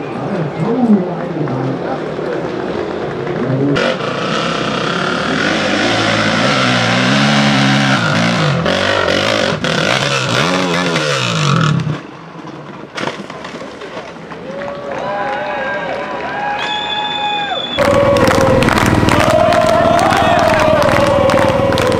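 A motorcycle engine revs hard and whines up and down.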